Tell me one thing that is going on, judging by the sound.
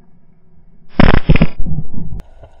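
A speargun fires underwater with a sharp, loud snap.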